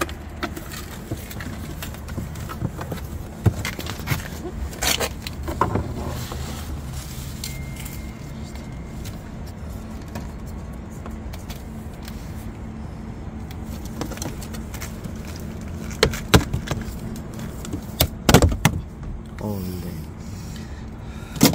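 Plastic panels click and rattle as they are pried loose.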